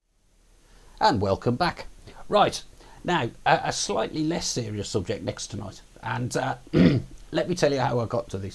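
A middle-aged man talks calmly and close up through a clip-on microphone.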